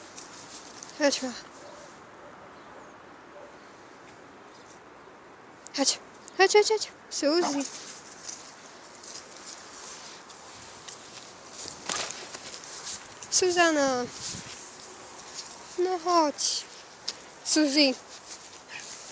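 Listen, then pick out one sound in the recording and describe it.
A dog whines and yelps in high, falling cries.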